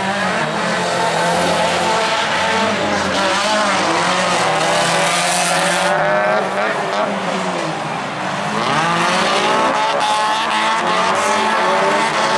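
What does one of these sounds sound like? Tyres skid and scatter gravel on a dirt track.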